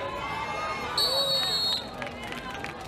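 A referee blows a whistle sharply.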